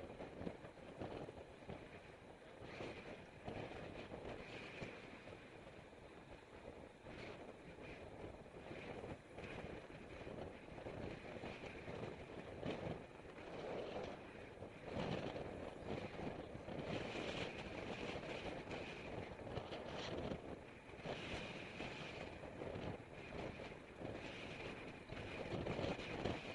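Wind rushes loudly past while riding outdoors.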